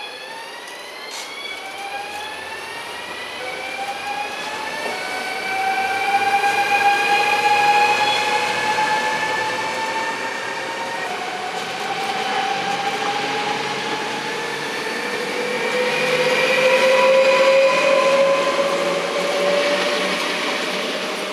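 A passenger train rolls past close by, its wheels rumbling on the rails.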